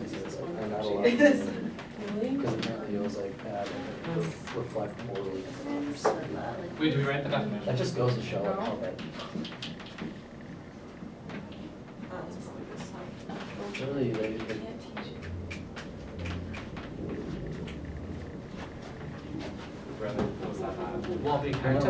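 Young men and women talk with one another nearby in a small room.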